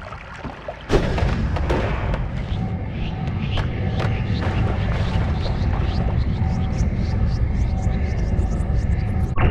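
A deep magical rumble roars steadily.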